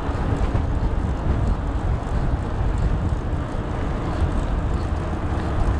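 Bicycle tyres roll over a paved path.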